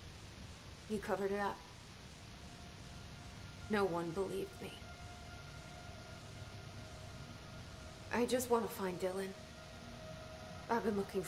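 A woman answers calmly and quietly.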